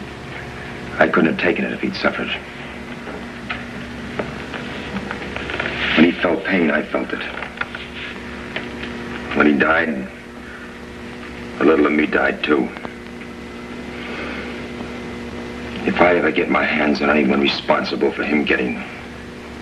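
Two men talk calmly nearby, taking turns.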